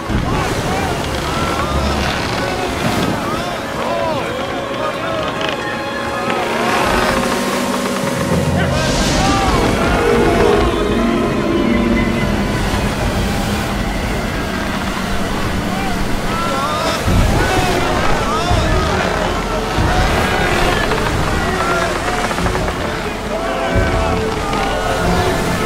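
Men shout in alarm close by.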